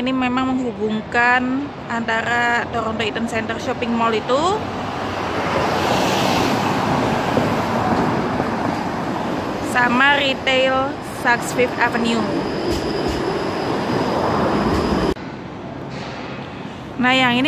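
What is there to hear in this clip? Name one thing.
City traffic rumbles steadily along a street outdoors.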